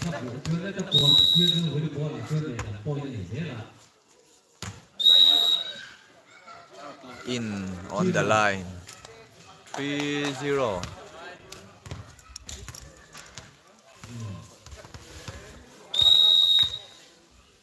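A referee's whistle blows in short, sharp blasts.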